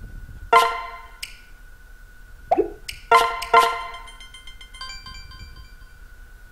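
Short electronic menu chimes beep.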